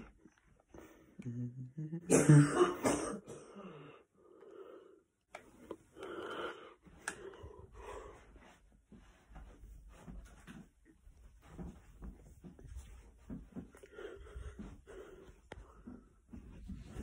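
A young man talks close to a phone microphone in a low, casual voice.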